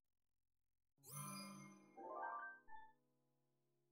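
Soft chimes ring out in a short rising tune.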